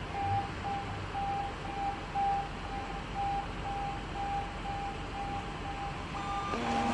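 An ambulance engine runs nearby.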